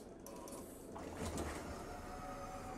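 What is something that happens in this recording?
Bus doors hiss open with a burst of air.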